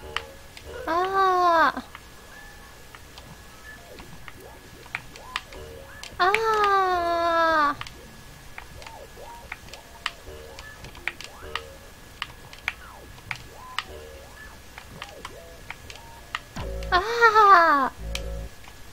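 Short falling electronic tones sweep down now and then.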